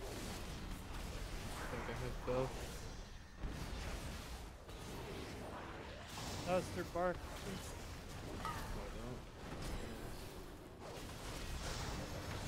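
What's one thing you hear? Fiery spells crackle and burst during a fight.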